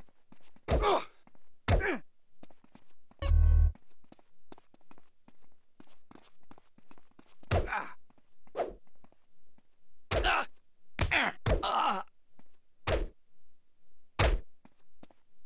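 A baseball bat thuds against bodies in quick, heavy blows.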